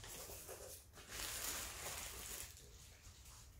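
Plastic bubble wrap crinkles.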